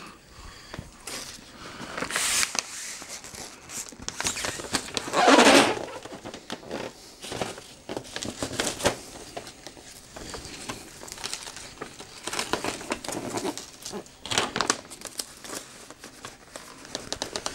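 Wrapping paper crinkles and rustles as a package is handled.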